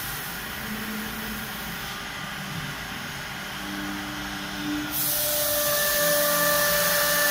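A machine router whines steadily as it cuts into wood.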